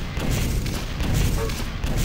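A rocket explodes with a boom.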